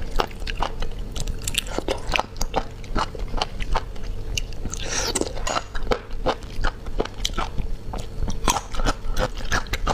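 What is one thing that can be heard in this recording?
A young woman chews and slurps wetly close to a microphone.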